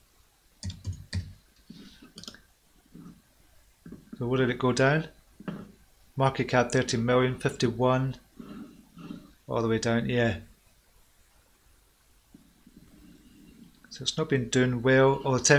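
A middle-aged man talks calmly into a close microphone, pausing now and then.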